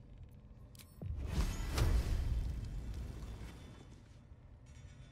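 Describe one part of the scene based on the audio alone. A magic blast bursts with a deep rumbling whoosh and slowly fades.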